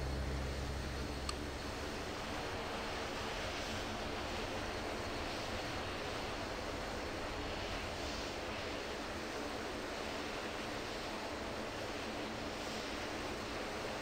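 A small propeller plane's engines drone steadily as it taxis along a runway.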